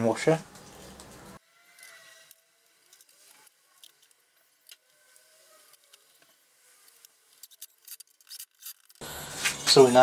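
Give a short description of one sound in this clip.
Small metal parts click and clink softly.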